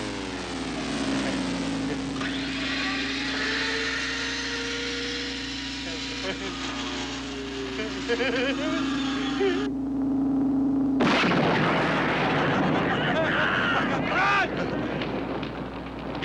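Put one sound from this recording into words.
A man shouts excitedly nearby.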